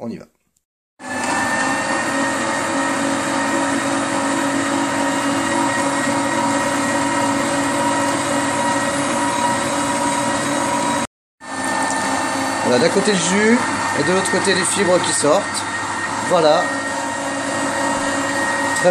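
A juicer motor hums steadily.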